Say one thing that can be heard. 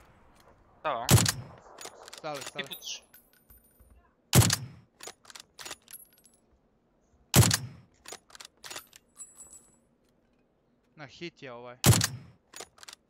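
A rifle fires single loud shots with a sharp echo.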